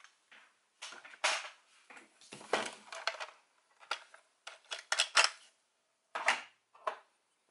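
Plastic parts click and clack as a toy is handled.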